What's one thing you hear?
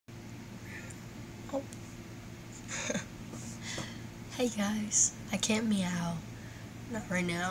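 A young woman speaks close to a microphone with animation.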